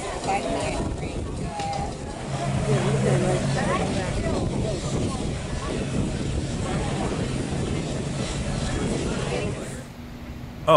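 A boat engine rumbles on the water.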